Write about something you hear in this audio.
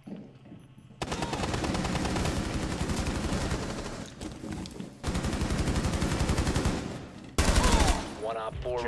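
Rapid gunfire rattles in long, loud bursts.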